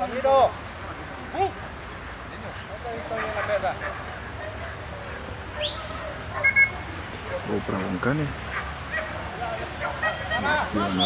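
Men call out to dogs outdoors, with excited, high-pitched calls.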